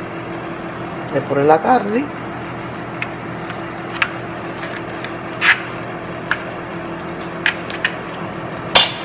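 A metal spoon clinks and scrapes against a foil pan.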